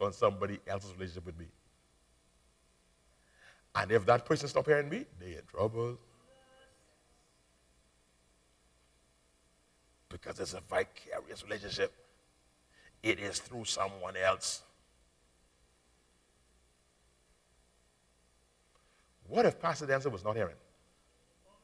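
A man preaches with animation through a microphone in a large hall, pausing often.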